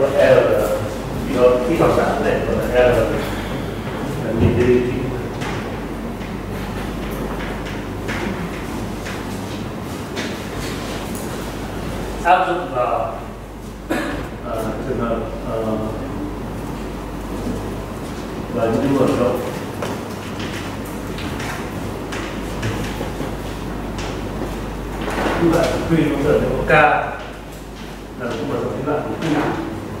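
A man lectures, speaking calmly.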